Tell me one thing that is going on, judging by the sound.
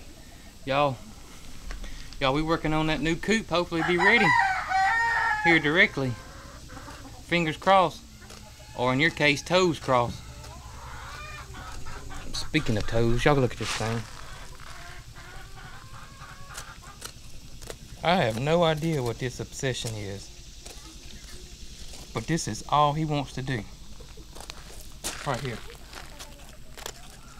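Chickens cluck and squawk close by.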